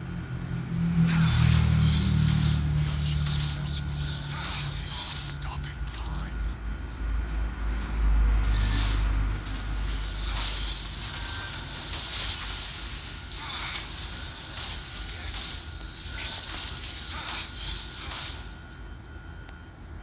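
Fantasy battle sound effects whoosh and crackle in short bursts.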